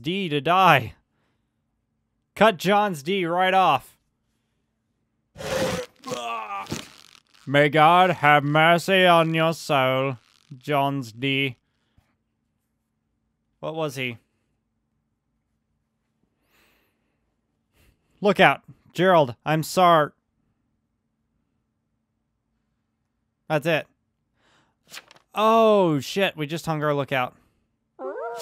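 A young man talks animatedly and close into a microphone, with pauses.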